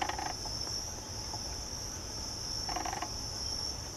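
A bird pecks softly at fruit.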